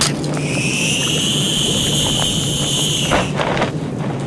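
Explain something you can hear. A zipline whirs as a figure slides along a cable.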